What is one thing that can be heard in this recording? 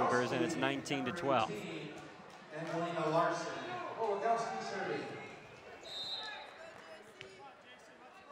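A volleyball bounces on a hard floor.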